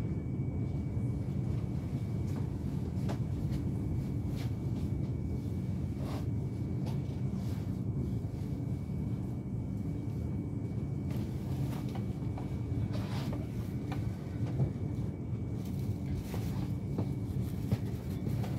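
A train rumbles steadily along the rails, heard from inside a carriage.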